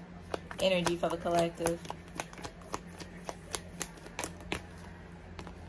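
Playing cards riffle and clack as they are shuffled.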